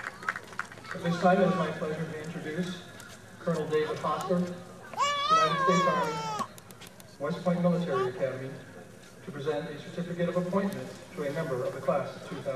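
A man speaks over a loudspeaker with pauses between phrases.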